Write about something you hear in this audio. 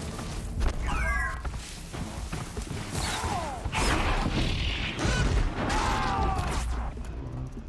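Robotic creatures screech and warble with gliding electronic cries.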